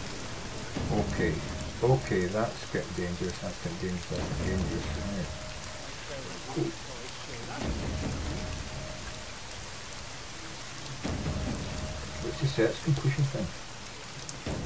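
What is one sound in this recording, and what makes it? A middle-aged man talks into a microphone with animation.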